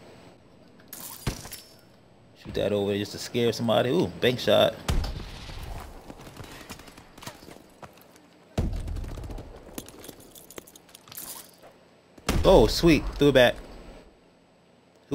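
Gunfire from a video game rattles in short bursts.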